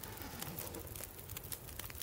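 A fire crackles close by.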